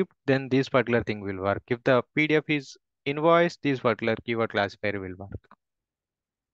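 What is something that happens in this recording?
A young man speaks calmly into a microphone on an online call.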